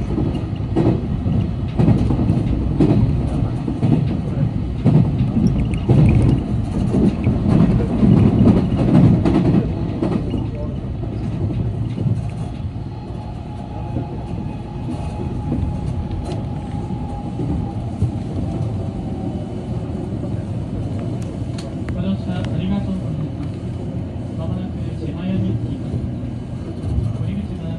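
An electric commuter train rumbles along the tracks, heard from inside the rear car.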